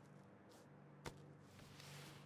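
A heavy body thuds onto the ground.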